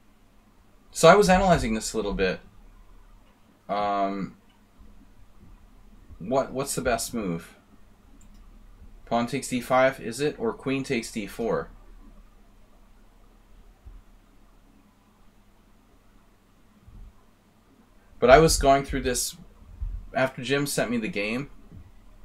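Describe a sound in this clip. A man talks calmly into a close microphone, in short bursts with pauses.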